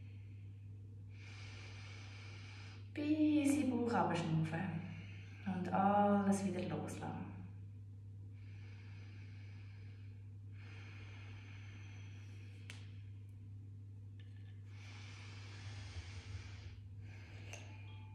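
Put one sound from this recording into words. A young woman breathes slowly and deeply in and out.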